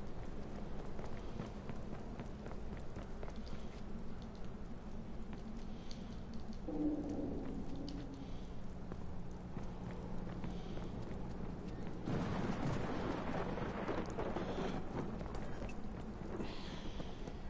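Footsteps run across pavement.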